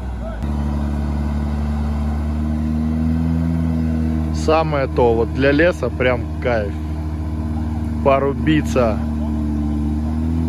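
A vehicle engine idles with a steady low rumble.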